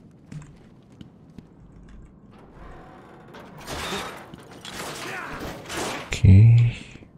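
A metal grate creaks and rattles as it is wrenched loose.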